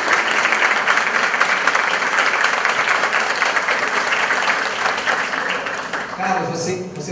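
An audience claps and applauds in a large room.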